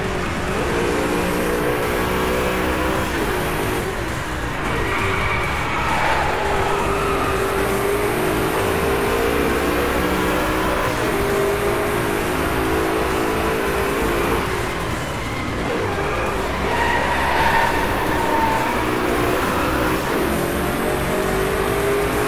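A car engine roars and revs up and down through the gears.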